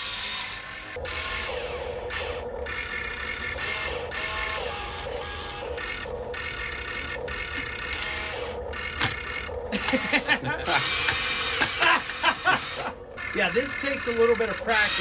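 Small electric motors whine as a toy excavator moves its arm.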